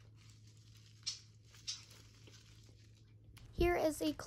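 Plastic wrapping crinkles in hands.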